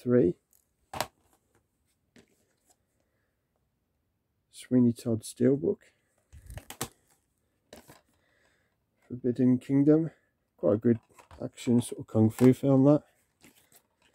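Plastic disc cases clack as they are set down on a pile.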